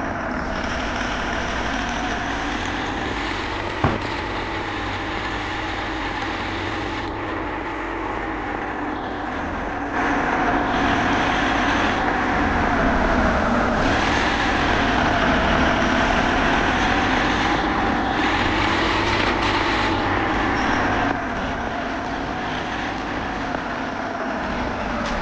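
A truck engine hums steadily and rises and falls in pitch as the truck speeds up and slows down.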